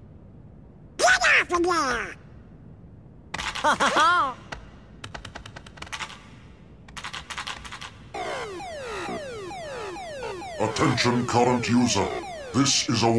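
A cartoon duck squawks and grumbles in a raspy voice.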